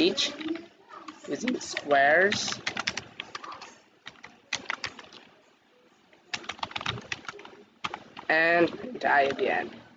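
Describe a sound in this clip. Keys click on a keyboard in quick bursts.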